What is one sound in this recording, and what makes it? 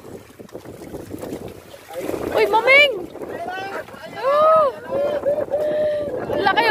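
Water splashes against the hull of a moving boat.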